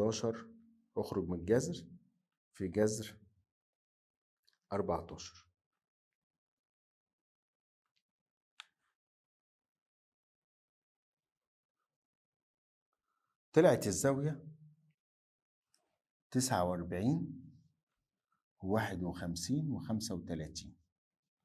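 A middle-aged man speaks calmly and clearly into a close microphone, in short bursts with pauses.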